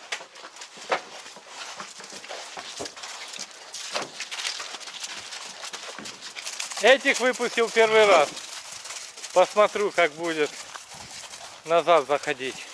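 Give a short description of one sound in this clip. Hooves crunch on frozen snow.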